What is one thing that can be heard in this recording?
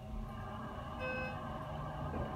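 An elevator chime rings once.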